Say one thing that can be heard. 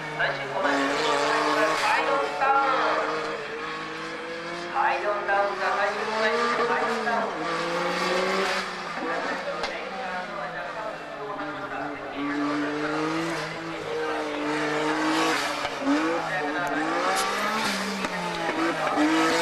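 A race car engine roars and revs up and down as the car drives through bends.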